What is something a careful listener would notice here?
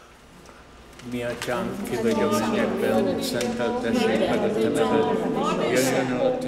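A choir sings.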